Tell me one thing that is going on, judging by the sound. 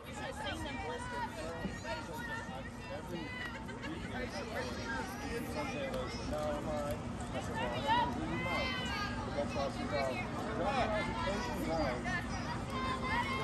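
Young players shout and chatter across an open outdoor field.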